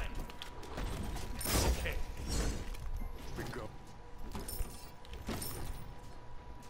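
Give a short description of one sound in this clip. Magical blasts crackle and whoosh in quick bursts.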